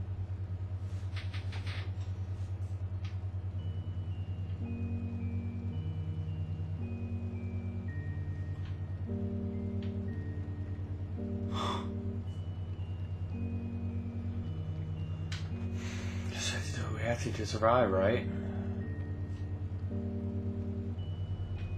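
Slow, eerie music plays throughout.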